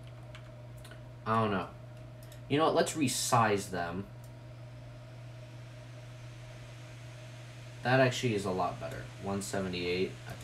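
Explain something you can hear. A computer mouse clicks softly.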